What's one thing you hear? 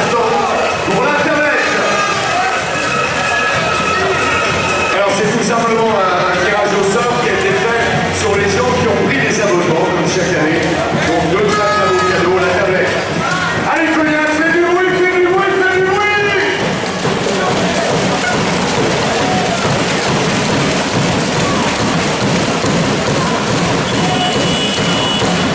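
A large crowd murmurs and chatters in an echoing indoor arena.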